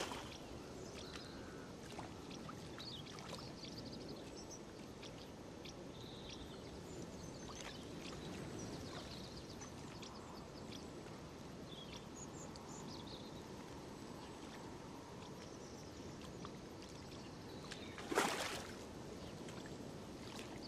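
Water laps gently at a lake shore, outdoors.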